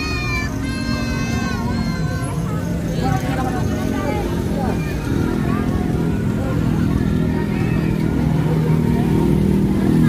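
A crowd of children and adults chatters and shouts outdoors.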